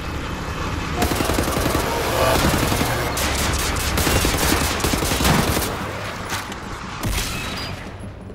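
Hovering machines whir and hum loudly.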